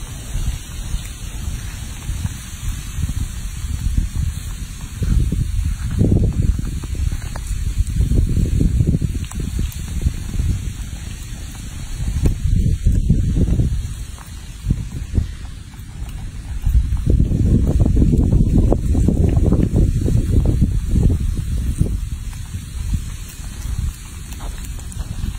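A small monkey chews and bites into soft food close by.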